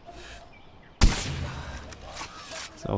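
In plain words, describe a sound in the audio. A sniper rifle fires a single loud shot that echoes and rumbles away.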